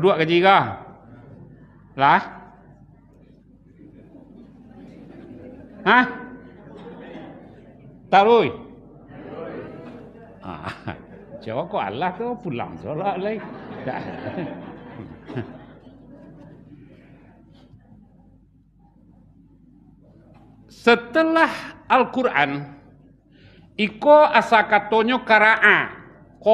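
An elderly man preaches into a microphone in bursts, raising his voice at times, in an echoing hall.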